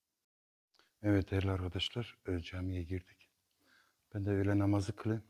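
A middle-aged man speaks calmly into a clip-on microphone, close by.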